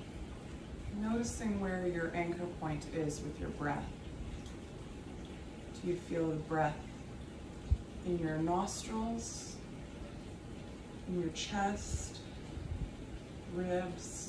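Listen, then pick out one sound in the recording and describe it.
A woman speaks slowly and calmly nearby, with pauses.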